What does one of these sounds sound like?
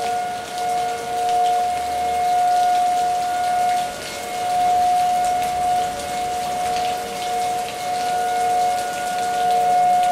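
Water rushes across a road.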